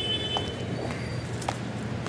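Footsteps scuff on a hard road surface.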